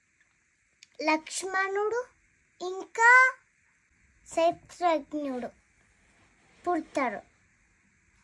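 A young girl speaks close by in short, halting phrases.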